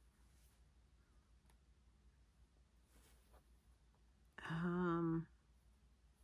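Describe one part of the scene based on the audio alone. Thread is pulled softly through cloth.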